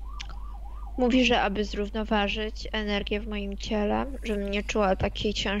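A woman speaks calmly through a headset microphone on an online call.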